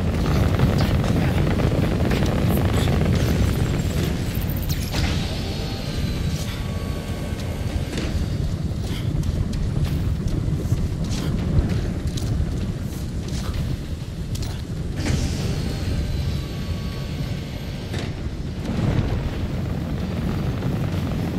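An energy beam hums and hisses steadily.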